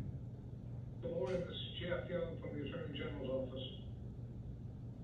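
A man speaks briefly across a quiet room.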